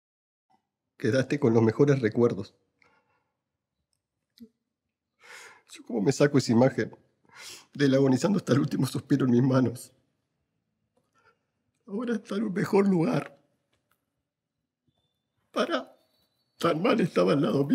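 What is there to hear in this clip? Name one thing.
A man speaks emotionally close to a microphone, his voice breaking as if near tears.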